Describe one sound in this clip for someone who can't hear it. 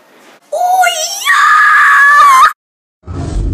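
A young boy sings in a high voice close to the microphone.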